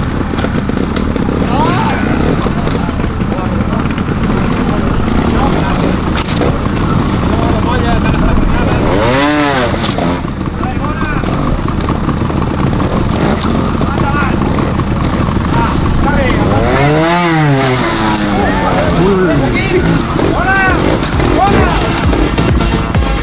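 A motorcycle engine idles and putters steadily.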